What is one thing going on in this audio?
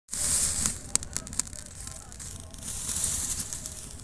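A wood fire crackles and hisses.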